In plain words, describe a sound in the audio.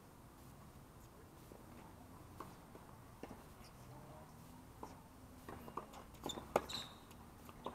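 Sneakers squeak and scuff on a hard court.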